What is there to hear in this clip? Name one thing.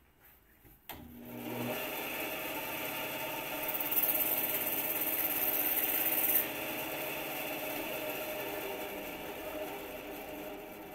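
A bench machine whirs steadily.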